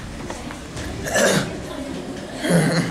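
A group of young women talk in a large echoing hall.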